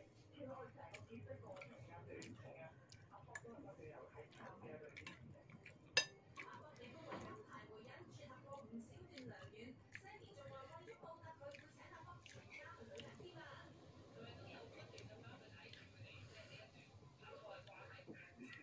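A metal spoon clinks and scrapes against a bowl.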